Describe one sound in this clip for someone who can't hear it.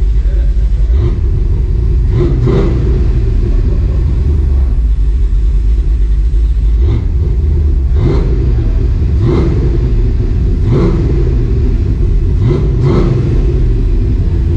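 A car engine revs up sharply several times and falls back.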